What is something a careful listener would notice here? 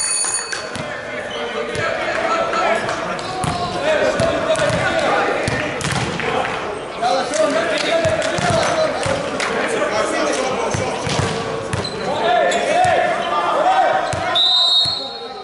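Men call out and talk loudly in a large echoing hall.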